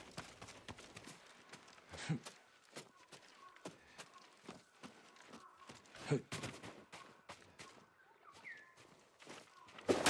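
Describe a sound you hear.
Footsteps patter quickly over stone and a thatched roof.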